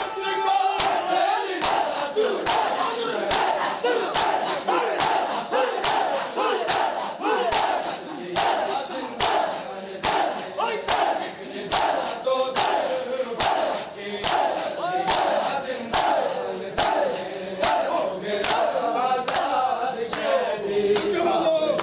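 A crowd of men beats their chests in a steady, loud rhythm.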